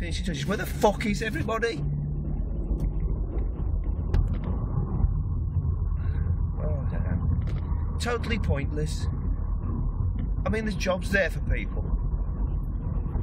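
Tyres roll steadily on the road, heard from inside a car.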